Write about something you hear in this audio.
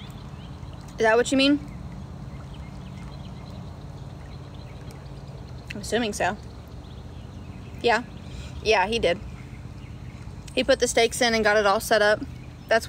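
A young woman speaks calmly in short phrases, close up.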